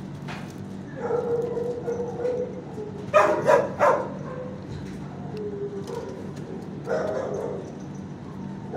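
A dog whines nearby.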